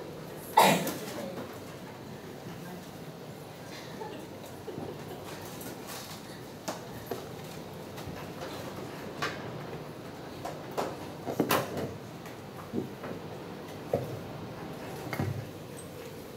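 A microphone thumps and rustles as it is handled and adjusted on a stand.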